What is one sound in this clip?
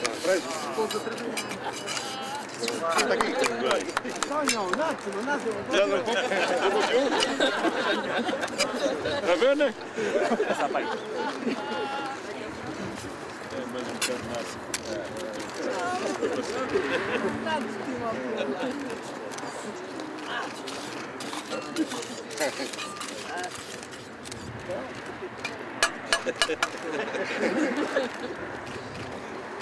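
Several men talk with one another outdoors, close by.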